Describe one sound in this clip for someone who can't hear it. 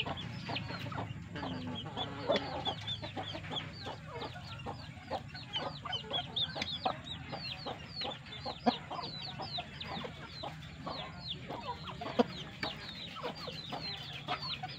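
Chickens peck at grain with quick taps.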